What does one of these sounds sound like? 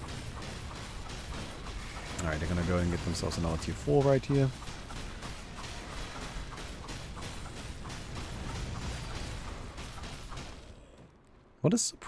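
Game battle effects clash and rumble.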